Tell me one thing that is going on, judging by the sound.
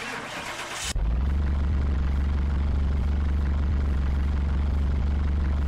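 A car engine idles with a steady low rumble.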